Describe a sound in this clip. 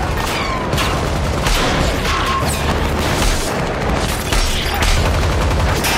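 Bullets strike and ricochet off a car.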